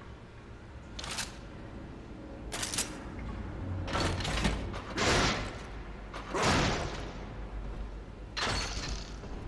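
A gun fires in short loud bursts.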